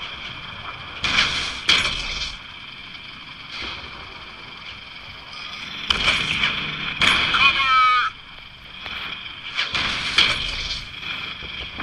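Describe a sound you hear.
Cannon shots boom and crash in short bursts.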